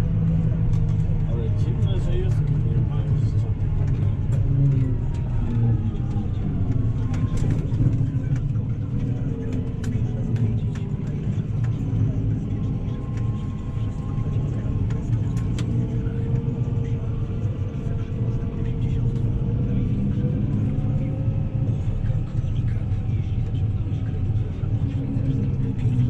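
A tractor cab rattles and knocks as the tractor rolls over rough ground.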